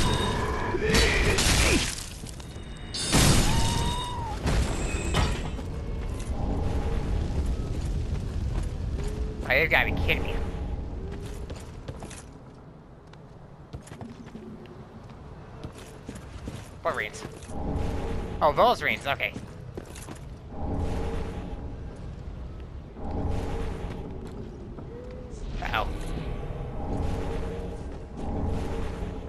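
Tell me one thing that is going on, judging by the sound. Armoured footsteps clank on hard ground.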